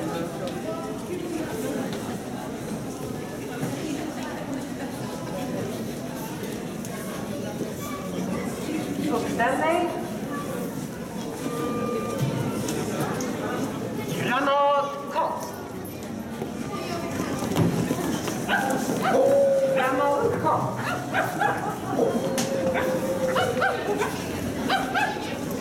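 A crowd of people chatters throughout in a large room.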